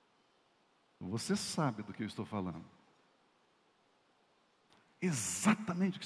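A man speaks with animation through a microphone, in short bursts.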